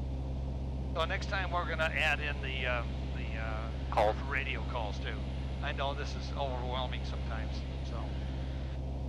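A man speaks calmly over a headset intercom.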